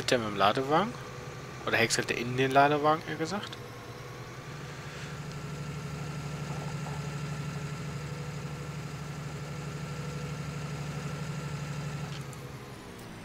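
A tractor engine hums steadily as it drives along.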